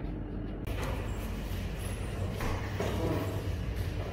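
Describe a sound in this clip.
Cardboard rustles as a box is opened by hand.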